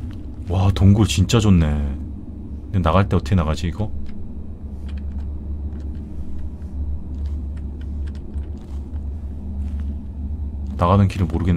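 Heavy paws pad softly over rocky ground.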